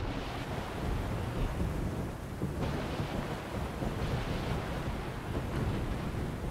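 Stormy waves crash and roar.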